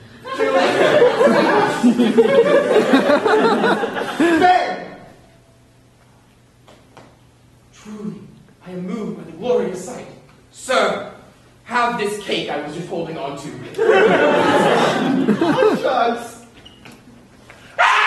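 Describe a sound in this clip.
A man shouts and talks with animation in a large echoing hall.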